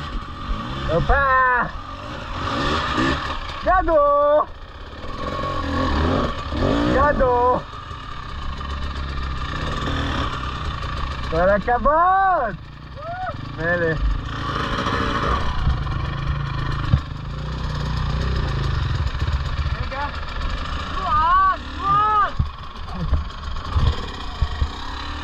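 A dirt bike engine idles with a low, steady rumble.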